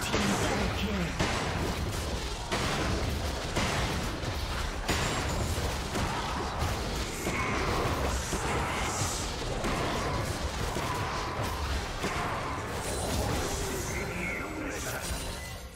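Game spells whoosh and crackle during a fast fight.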